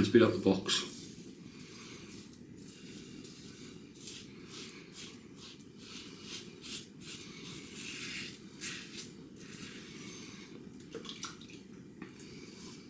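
A razor scrapes through stubble in short strokes, close by.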